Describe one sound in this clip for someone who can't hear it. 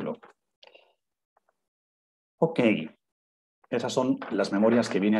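A man speaks calmly through a microphone in an online call, with short pauses.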